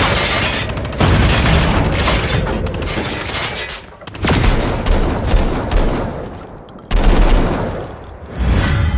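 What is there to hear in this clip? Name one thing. Gunfire crackles in loud bursts.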